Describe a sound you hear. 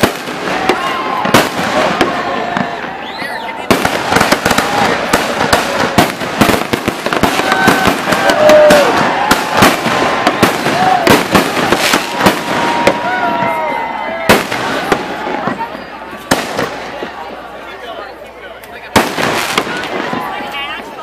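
Fireworks whistle as they rise.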